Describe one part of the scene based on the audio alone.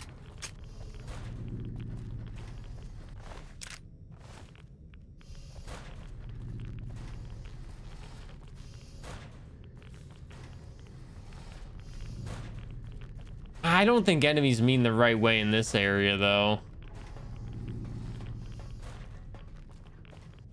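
A young man speaks calmly and quietly into a close microphone.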